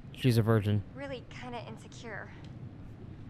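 A young woman speaks softly and playfully.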